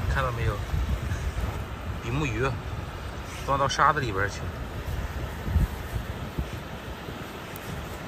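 Fingers scrape and dig through wet sand close by.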